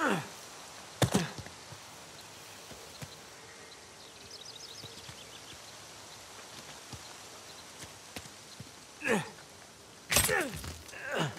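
Footsteps land with heavy thuds on rock.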